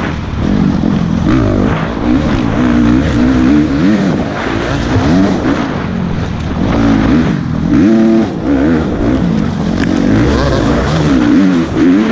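A dirt bike engine revs and roars up close, rising and falling with the throttle.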